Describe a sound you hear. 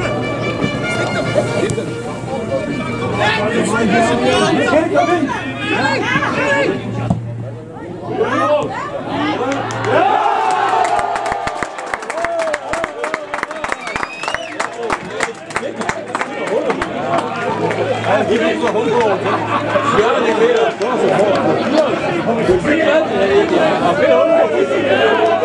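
A small crowd of spectators cheers and shouts.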